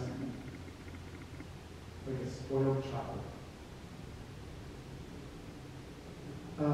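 A man speaks calmly into a microphone in a slightly echoing room.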